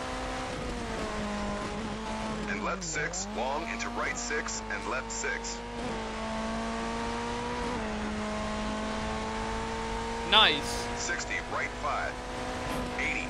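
A rally car engine roars and revs, shifting gears.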